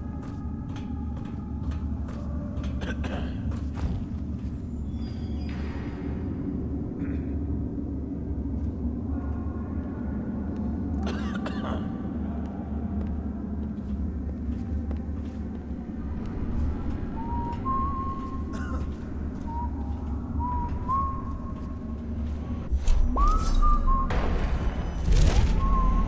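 Footsteps clank on metal stairs and grating.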